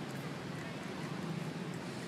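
A young monkey squeaks softly close by.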